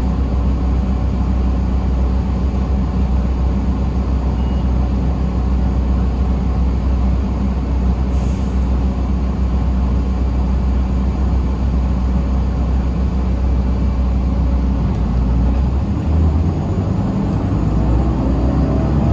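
Tyres roll on the road with a steady rush.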